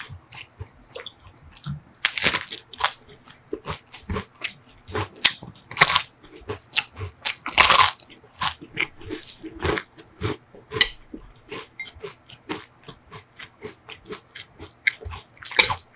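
A man chews with wet mouth sounds close to a microphone.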